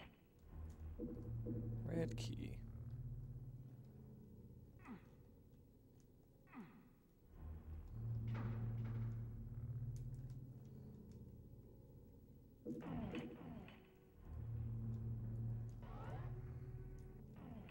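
A heavy metal door rumbles open with a low, steady hum.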